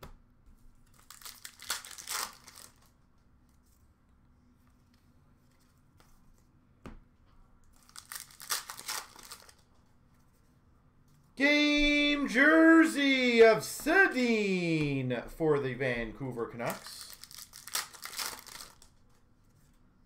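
Plastic card sleeves rustle and crinkle close by.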